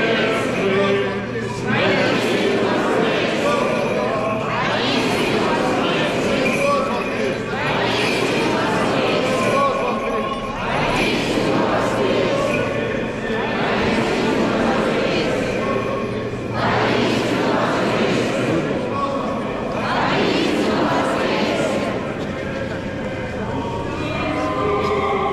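A crowd of men and women sings together in a large echoing hall.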